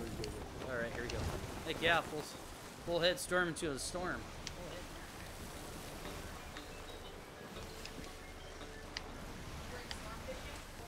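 Waves wash against a sailing ship's hull.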